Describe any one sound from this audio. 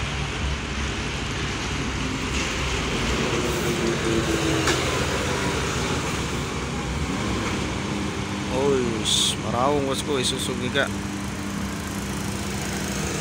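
A truck's diesel engine rumbles steadily as it drives past.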